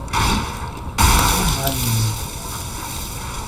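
Electricity crackles and buzzes in a sharp burst.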